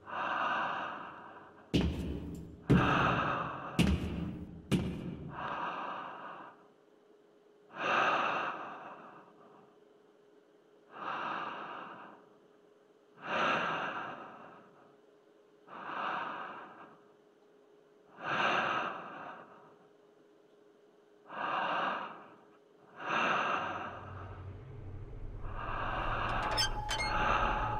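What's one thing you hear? Someone breathes slowly and heavily through a gas mask.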